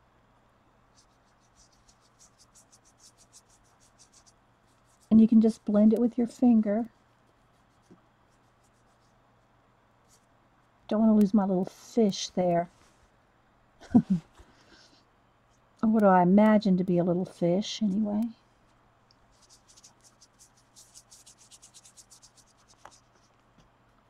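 A paintbrush brushes softly across a pumpkin's surface.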